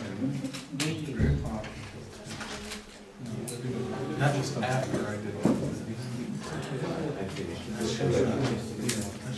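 An elderly man speaks calmly in a room with a slight echo.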